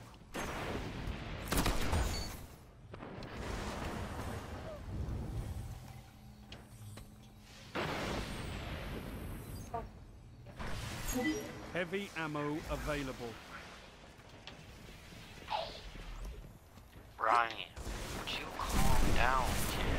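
Gunfire from a video game crackles in short bursts.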